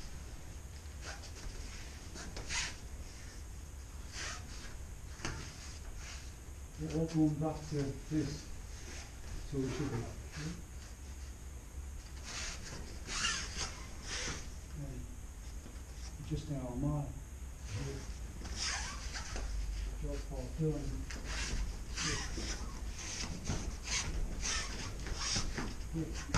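Bare feet shuffle and brush across a mat.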